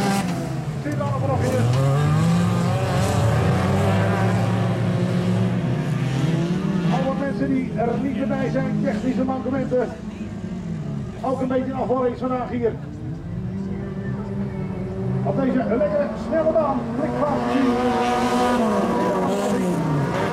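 Several car engines roar and rev in the distance.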